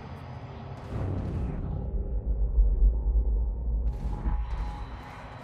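An elevator hums and rumbles as it moves.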